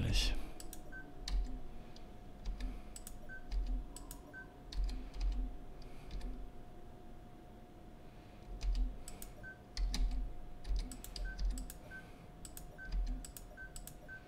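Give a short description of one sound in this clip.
A small electronic device gives short, soft beeps now and then.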